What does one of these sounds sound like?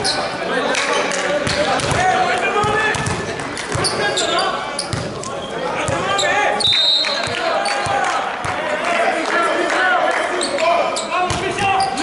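A volleyball is struck hard and thumps on the floor.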